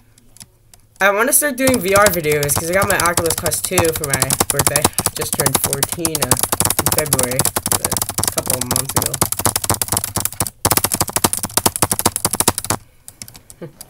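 Fast electronic game music plays with a pounding beat.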